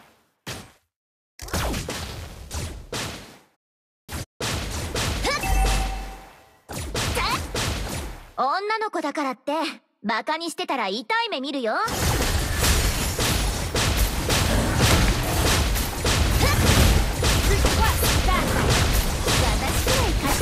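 Game combat effects clash and burst rapidly.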